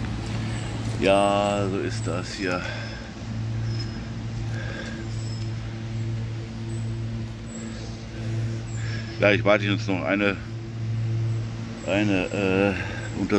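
An elderly man speaks calmly, close to the microphone.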